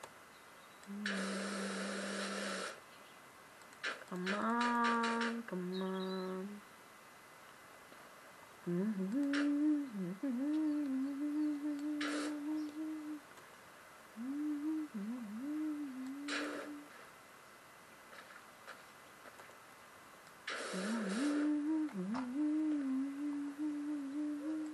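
Electronic video game sounds play in bursts from a television speaker.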